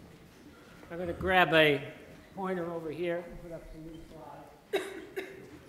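A man speaks into a microphone in a large echoing hall.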